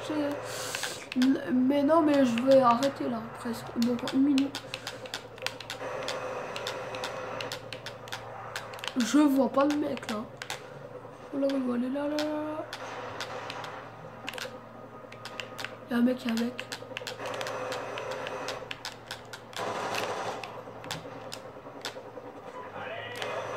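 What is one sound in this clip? Video game sounds play through a television speaker in a room.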